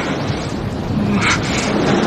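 Waves wash onto a shore nearby.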